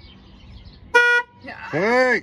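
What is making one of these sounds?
A car horn honks briefly.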